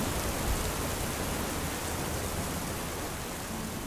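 Garlic drops into hot oil.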